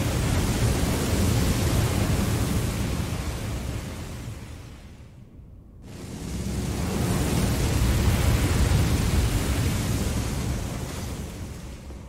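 Fire roars and whooshes in loud bursts.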